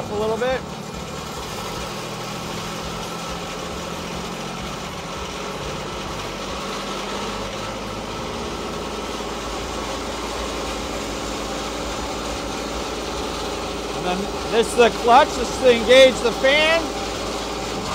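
An engine hums steadily nearby.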